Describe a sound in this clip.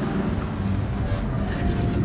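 Aircraft engines drone overhead.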